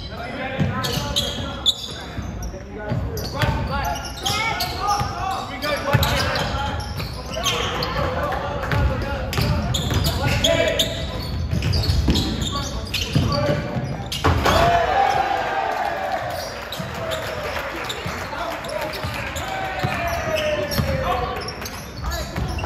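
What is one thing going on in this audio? A basketball bounces on a wooden floor in an echoing gym.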